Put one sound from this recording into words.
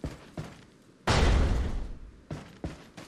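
A wooden door bangs open with a rattle.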